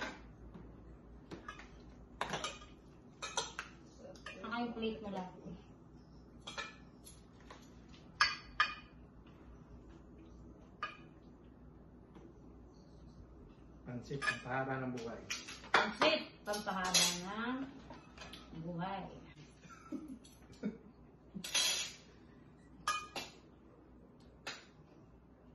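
Cutlery clinks and scrapes against dishes.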